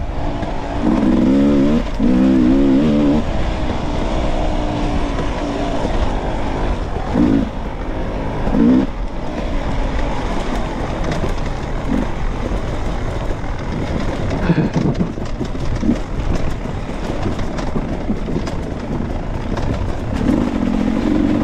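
A dirt bike engine revs up and down as the rider accelerates.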